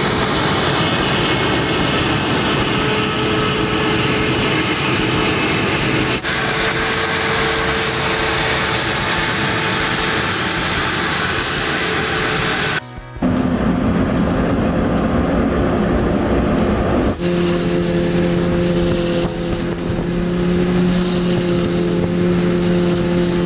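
A heavy truck engine roars as it drives past.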